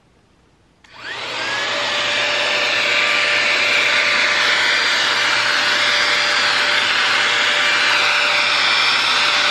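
A hair styling tool switches on and blows air with a steady whirring hiss.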